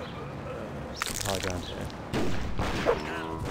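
A machine gun fires in short bursts.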